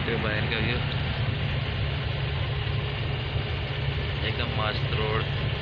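A vehicle engine rumbles steadily from inside.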